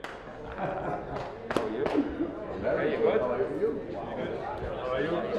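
A man talks cheerfully up close.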